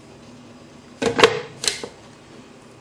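A lid clicks and knocks onto a plastic food chopper.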